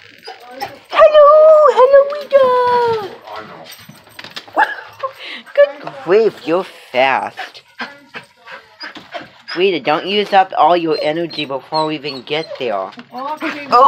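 A dog howls and whines loudly close by.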